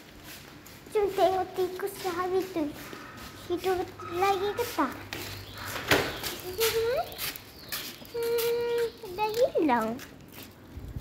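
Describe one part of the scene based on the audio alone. A young girl sings close by.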